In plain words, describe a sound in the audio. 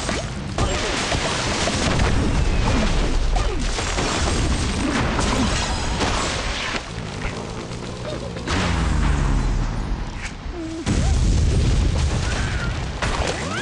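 Wooden and stone blocks crash and tumble as a structure collapses.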